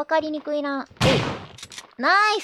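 A gunshot bangs once.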